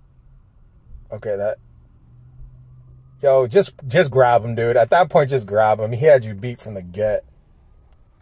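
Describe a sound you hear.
A man talks close to a microphone, calmly and then with animation.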